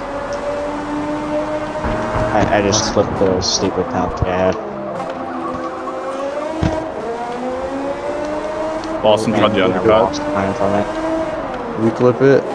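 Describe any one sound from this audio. A racing car engine whines at high revs, its pitch rising and falling as it changes gear.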